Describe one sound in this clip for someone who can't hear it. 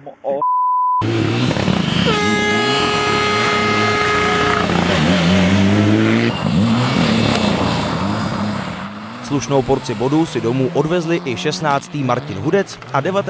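A rally car engine roars and revs hard as it passes.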